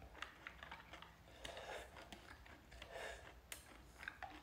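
A young man slurps from a glass bowl.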